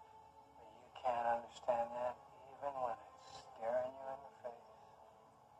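An elderly man speaks slowly and quietly.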